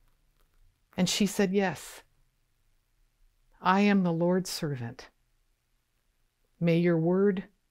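A middle-aged woman speaks calmly and slowly into a close microphone, with pauses.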